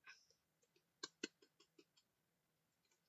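A hand taps lightly on paper lying on a wooden floor.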